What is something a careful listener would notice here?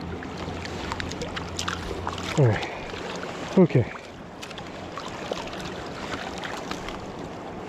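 A river flows and ripples steadily outdoors.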